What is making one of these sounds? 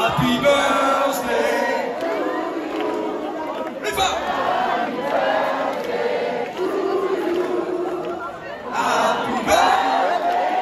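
A man and a woman sing into microphones over loudspeakers in a large hall.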